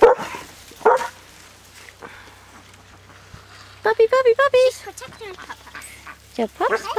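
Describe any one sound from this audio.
Puppies yelp and whimper close by.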